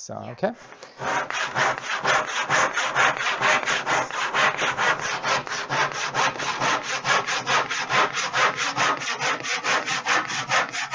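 A hand saw cuts wood with fast, rhythmic strokes.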